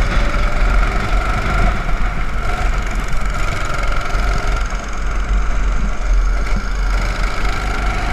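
A second go-kart engine buzzes nearby.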